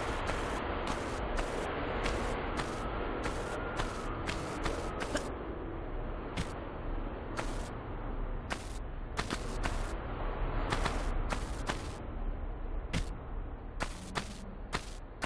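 Footsteps tap on a stone floor, echoing slightly.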